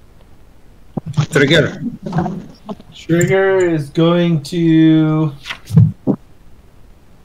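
A man speaks animatedly over an online call, drawing out his words.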